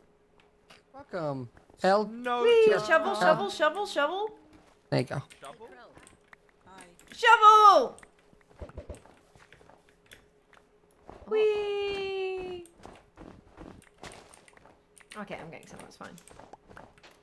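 A young woman talks animatedly into a close microphone, with sung and drawn-out exclamations.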